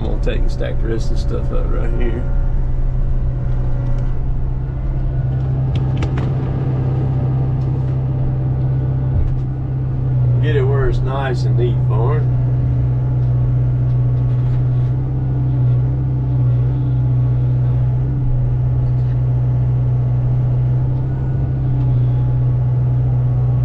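A heavy machine's diesel engine drones steadily up close.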